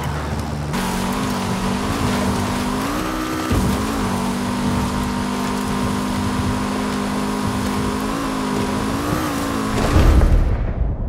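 A car engine revs high and steady at speed.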